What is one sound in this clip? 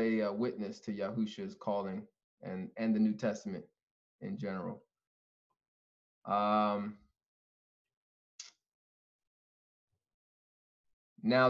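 A young man speaks calmly into a microphone, pausing between phrases.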